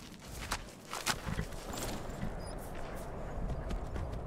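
A horse's hooves clop slowly on stone.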